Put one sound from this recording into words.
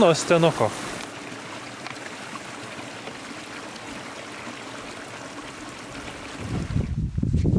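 A small stream gurgles and trickles close by.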